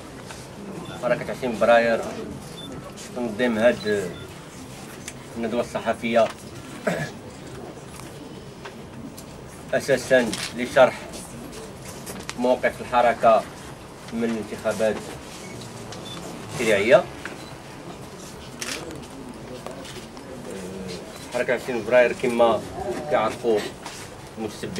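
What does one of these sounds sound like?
A man speaks calmly in bursts, with pauses, in a room with a slight echo.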